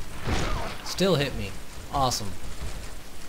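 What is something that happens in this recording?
A wooden door thuds shut.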